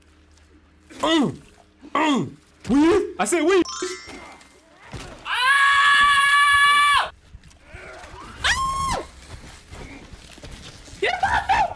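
A young man shouts and screams in fright into a close microphone.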